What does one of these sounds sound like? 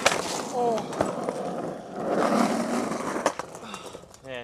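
A skater falls and thuds on the pavement.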